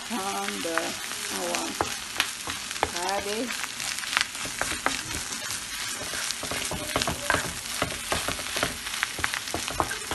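A wooden spoon scrapes and taps against a frying pan.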